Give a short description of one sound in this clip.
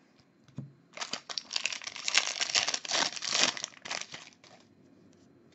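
A foil wrapper crinkles loudly as it is torn open.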